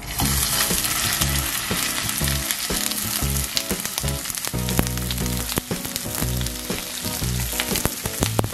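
Chicken sizzles in hot oil in a pan.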